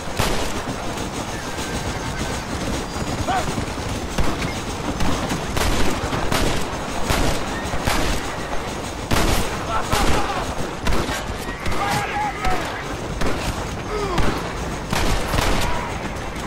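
A steam locomotive chugs and rumbles nearby.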